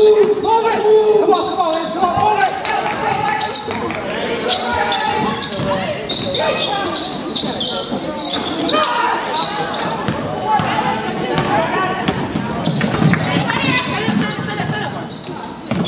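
Spectators shout and cheer, echoing in a large hall.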